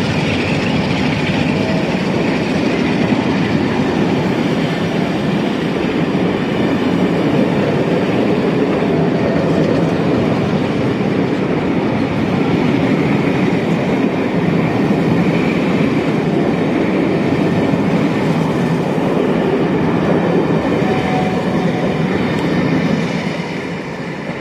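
Railway carriages roar past close by, their wheels rumbling and clattering on the rails.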